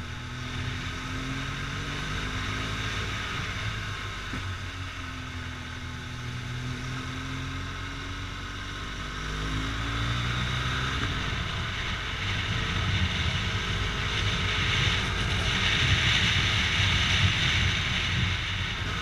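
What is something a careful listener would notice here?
A motorcycle engine hums steadily and its pitch rises and falls with the throttle.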